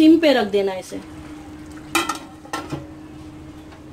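A metal lid clinks onto a pot.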